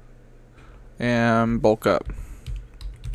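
A man speaks with animation into a close microphone, holding a drawn-out sung note.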